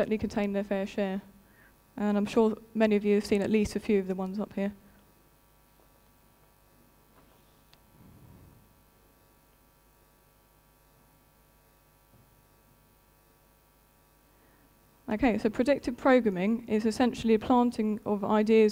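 A woman speaks calmly through a microphone in a large room, pausing between phrases.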